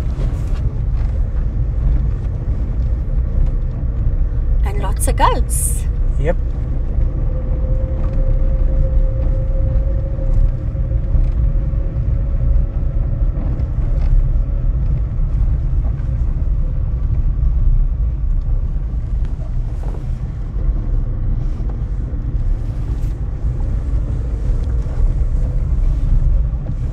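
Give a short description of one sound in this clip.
A car engine hums low and steady from inside a vehicle driving slowly.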